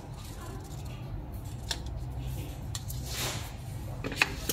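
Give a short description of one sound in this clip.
Paper pages flutter as a booklet is flipped.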